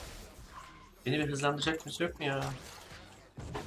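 An older man speaks with animation into a close microphone.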